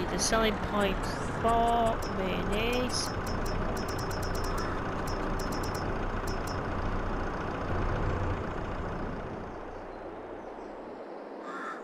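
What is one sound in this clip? A forklift engine idles with a low hum.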